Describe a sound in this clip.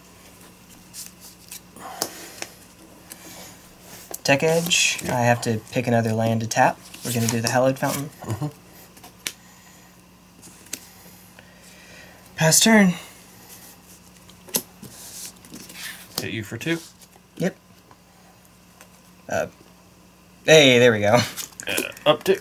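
Playing cards are shuffled and slid softly onto a cloth mat.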